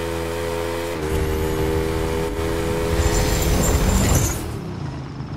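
A motorcycle skids and crashes with a rough scraping noise.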